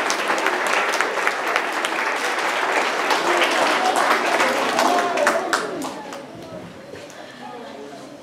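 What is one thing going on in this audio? Many children chatter and call out in a large echoing hall, then quiet down.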